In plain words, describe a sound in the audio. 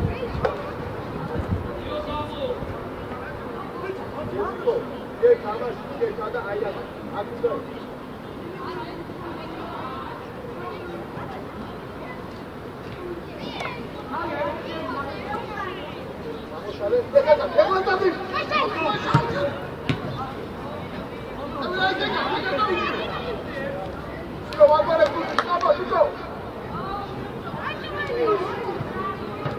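Young players shout to one another across an open field.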